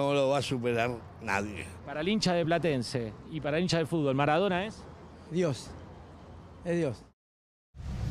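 An older man speaks cheerfully into a close microphone.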